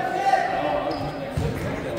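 A volleyball is struck hard with a slap.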